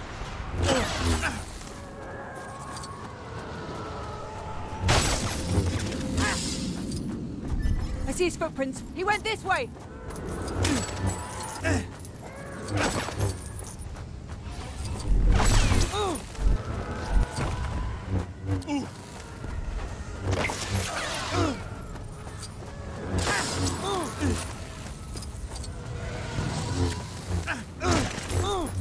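A lightsaber hums and swooshes through the air.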